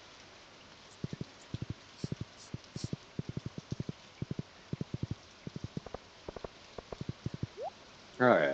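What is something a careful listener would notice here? Quick footsteps tap steadily on a path.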